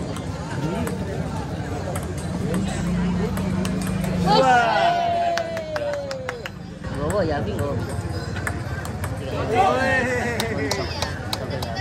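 A table tennis ball clicks sharply against paddles and the table.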